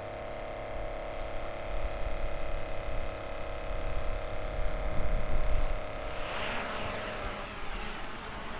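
A small motor hums steadily nearby.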